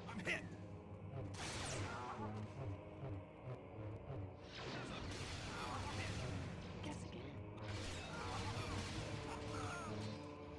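Lightsabers swoosh and clash in a fight.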